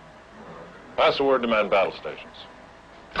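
A man speaks on a phone.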